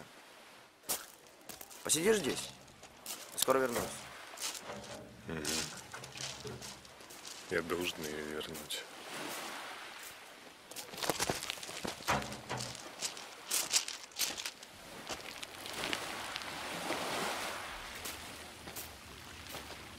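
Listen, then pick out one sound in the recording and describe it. Footsteps crunch on pebbles.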